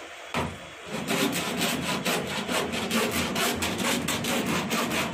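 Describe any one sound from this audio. A metal blade scrapes rapidly back and forth across a ridged metal part.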